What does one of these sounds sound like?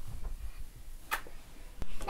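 A little girl kisses a painting.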